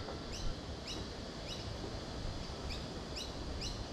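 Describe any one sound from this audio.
A fishing reel clicks and whirs as its handle is wound.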